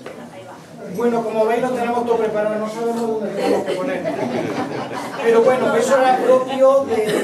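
A folk band plays lively music on guitars.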